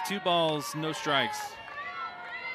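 A crowd cheers and shouts in the stands.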